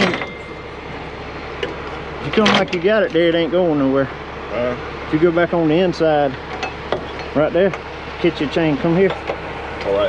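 Metal chain links clink and rattle.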